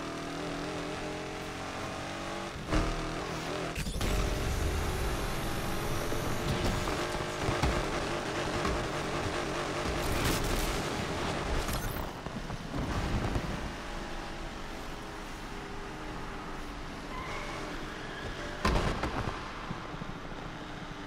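A car engine roars at high revs and shifts gears as it speeds along.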